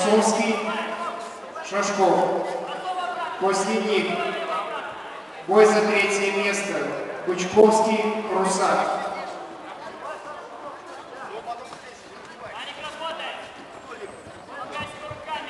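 Men shout loudly in a large echoing hall.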